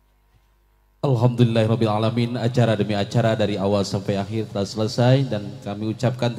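A man chants loudly through a microphone and loudspeakers.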